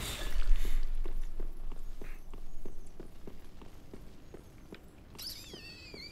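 Heavy armoured footsteps clank quickly on stone.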